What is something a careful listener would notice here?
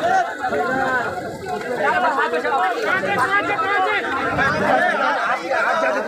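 Several men shout and talk excitedly close by.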